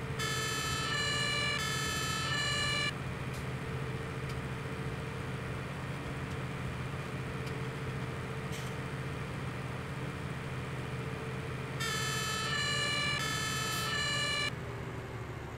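A fire engine's siren sounds in a two-tone wail.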